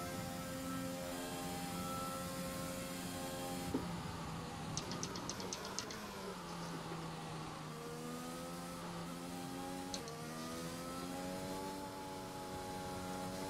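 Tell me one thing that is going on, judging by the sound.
A racing car engine whines at high revs, drops sharply while braking, then climbs again as it speeds up.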